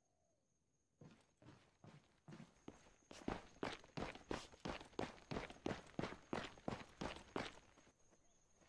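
Boots tread on pavement at a walking pace.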